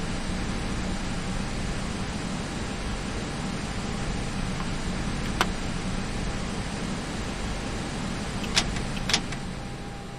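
A jet engine hums steadily at idle.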